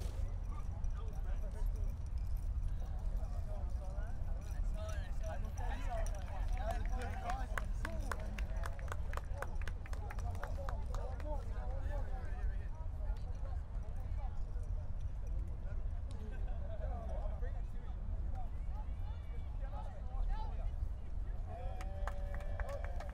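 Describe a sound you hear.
Men talk and shout together outdoors.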